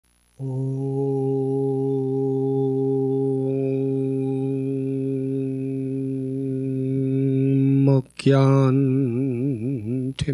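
A man chants a long, steady note into a microphone.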